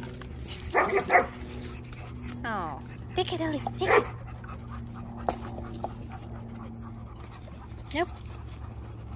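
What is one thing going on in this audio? A dog yips and barks excitedly nearby.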